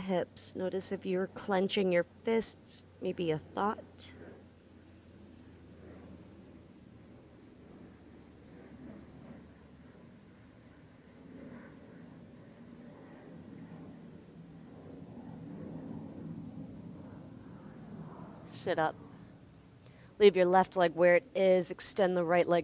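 A young woman speaks calmly and clearly into a close microphone, pausing for a long stretch.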